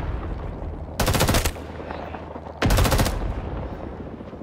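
A rifle fires rapid bursts of gunshots nearby.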